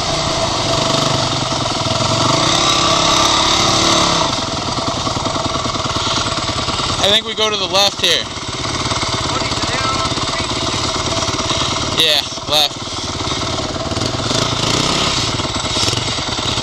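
A dirt bike engine runs close by, revving up and down.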